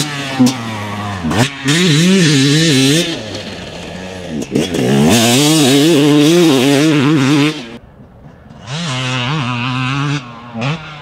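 A dirt bike engine revs hard and rises and falls in pitch.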